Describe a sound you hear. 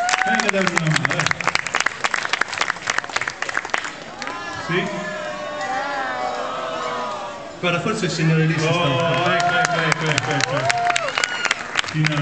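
An audience claps and cheers outdoors.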